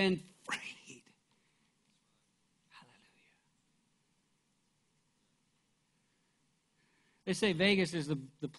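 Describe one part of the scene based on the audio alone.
A middle-aged man speaks with animation through a microphone in a large hall, pausing between phrases.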